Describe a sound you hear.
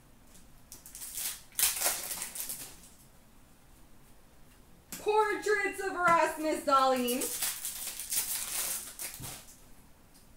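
Foil card wrappers crinkle and tear in hands.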